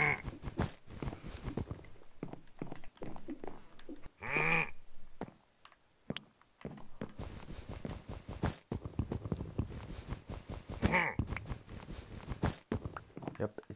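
Blocks crunch repeatedly as they are broken in a video game.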